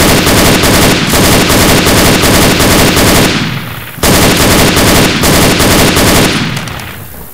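An automatic rifle fires rapid, loud bursts.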